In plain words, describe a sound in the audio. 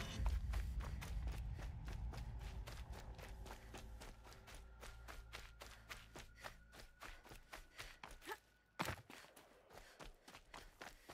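Footsteps crunch quickly through dry grass and dirt.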